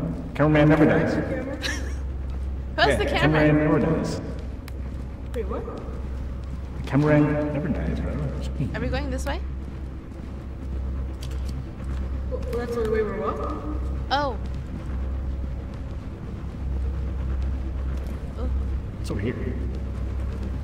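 A young woman talks animatedly and laughs into a close microphone.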